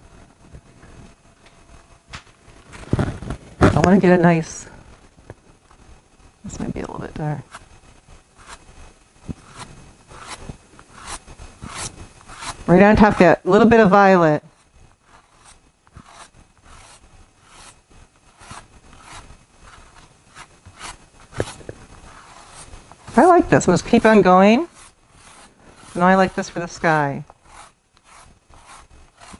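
A pastel stick scratches and taps on paper.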